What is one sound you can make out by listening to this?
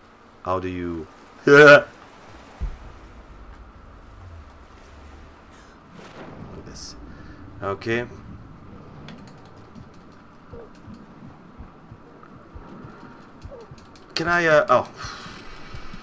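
A man speaks briefly into a close microphone.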